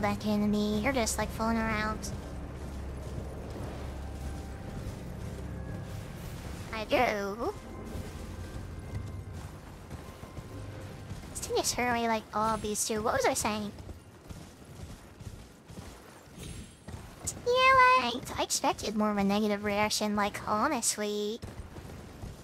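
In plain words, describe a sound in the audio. A young woman talks animatedly into a close microphone, in short bursts.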